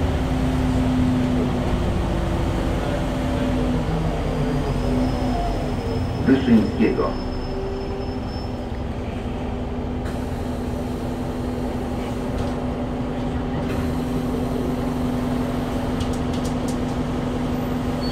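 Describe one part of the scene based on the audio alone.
A bus engine hums and rumbles steadily from inside the bus.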